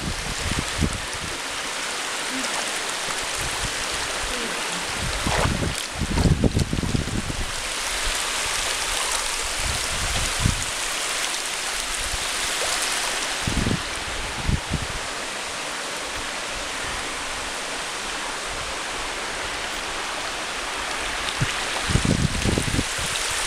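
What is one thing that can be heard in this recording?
Water rushes steadily close by over rock.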